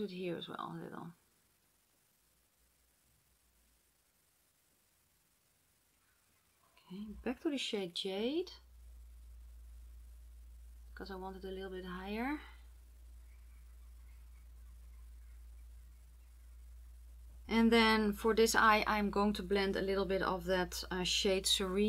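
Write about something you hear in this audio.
A woman talks calmly and close to a microphone, in bursts with pauses.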